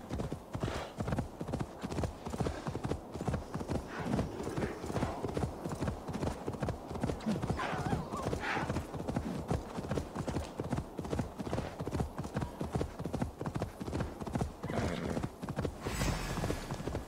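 A horse gallops with rapid, steady hoofbeats on soft ground.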